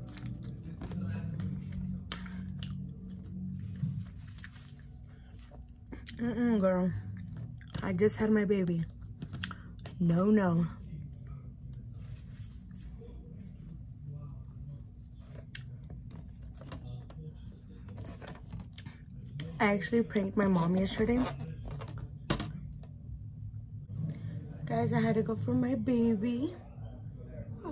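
A young woman chews food wetly close to a microphone.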